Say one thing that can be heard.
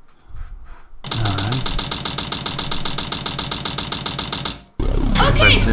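Fast, pulsing electronic game music plays.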